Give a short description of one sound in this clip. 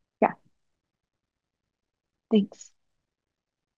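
A young woman speaks briefly over an online call.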